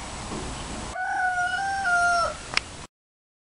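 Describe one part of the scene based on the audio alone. A rooster crows.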